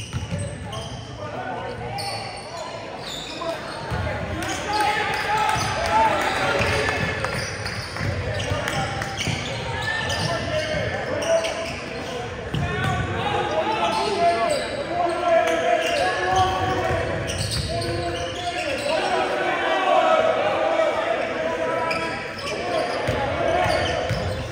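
Spectators on the sidelines chatter and call out.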